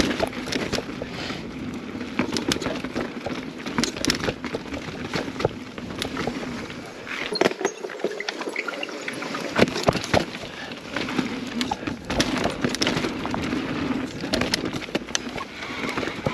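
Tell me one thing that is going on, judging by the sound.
Mountain bike tyres roll and crunch along a dirt trail.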